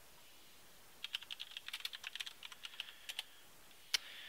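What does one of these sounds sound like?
Keys on a keyboard click in quick bursts of typing.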